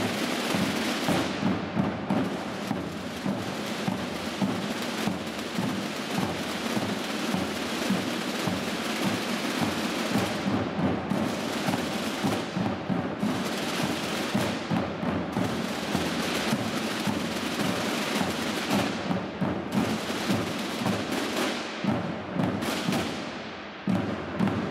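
Many drums beat loudly and steadily in a large echoing hall.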